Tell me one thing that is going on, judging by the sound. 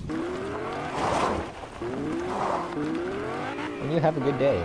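A car engine revs up repeatedly as it drives away.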